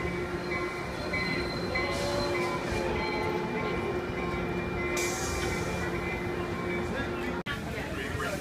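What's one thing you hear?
A stopped train's engine hums steadily close by.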